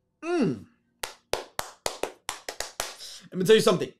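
A man claps his hands rapidly.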